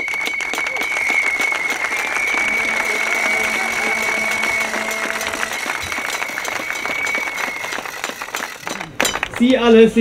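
A crowd claps outdoors.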